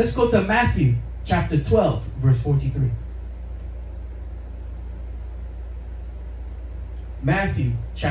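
A man speaks into a microphone through a loudspeaker, preaching with pauses.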